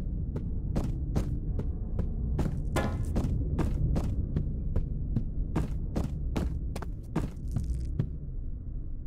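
Footsteps thud steadily across wooden floorboards, then stop.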